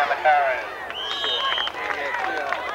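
A referee's whistle blows sharply.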